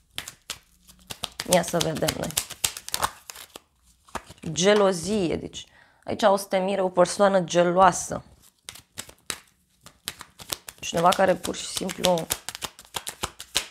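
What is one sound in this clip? Playing cards shuffle and riffle with quick soft clicks.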